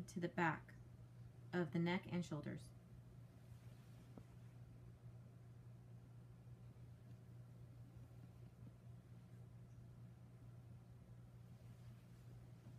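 Hands rub softly over skin.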